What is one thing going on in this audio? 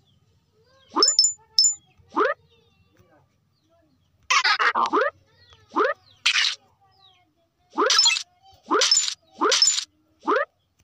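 A bright chime rings as coins are collected.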